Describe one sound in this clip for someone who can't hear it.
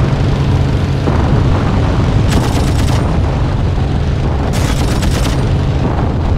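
A propeller plane's engine drones steadily and loudly.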